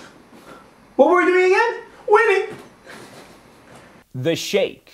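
A young man shouts and sings out loudly.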